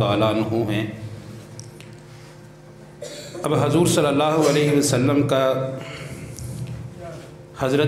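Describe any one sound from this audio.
A man chants and speaks with fervour into a microphone, heard through a loudspeaker.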